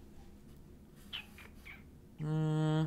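A brush strokes softly across paper.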